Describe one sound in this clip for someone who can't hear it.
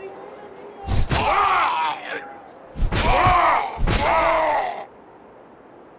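Heavy blows strike loudly in a fight.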